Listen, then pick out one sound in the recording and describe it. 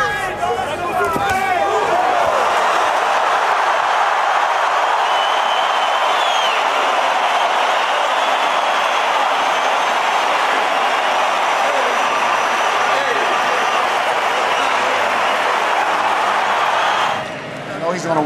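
A large crowd roars and cheers loudly in a big arena.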